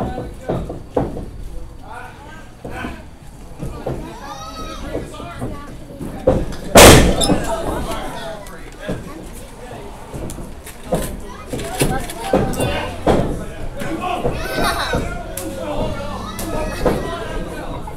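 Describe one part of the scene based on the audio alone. Wrestlers slam onto a ring mat with loud thuds.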